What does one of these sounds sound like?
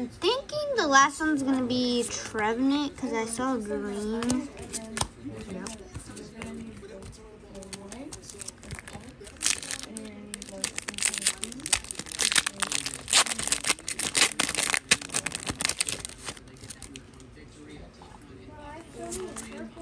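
Playing cards slide and flick against each other.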